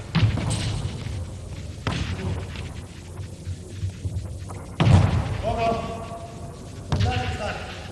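A handball thumps on a hard floor in an echoing hall.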